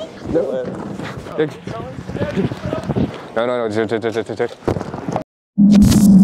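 Young men shout and laugh excitedly.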